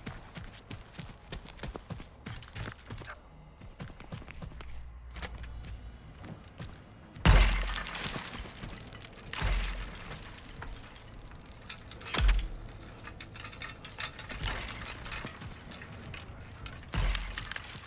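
Footsteps creak and thud on wooden floorboards.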